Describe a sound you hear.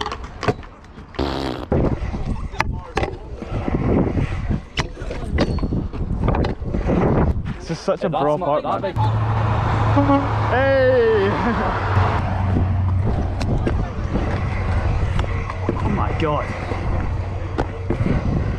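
A scooter's deck clacks against concrete.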